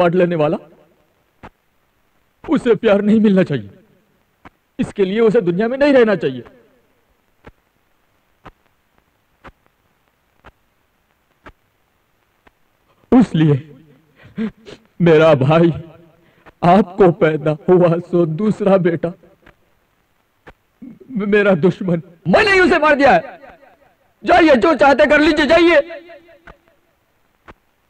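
A young man pleads emotionally, close by, his voice cracking.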